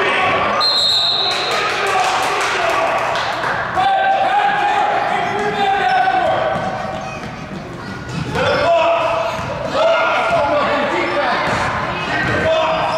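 Children shout and call out in a large echoing gym.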